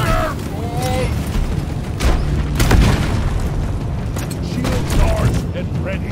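Flames roar from a game flamethrower.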